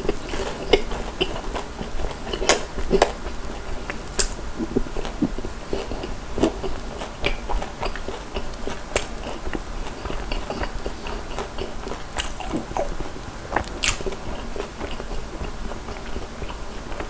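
A man chews crunchy food noisily, close to a microphone.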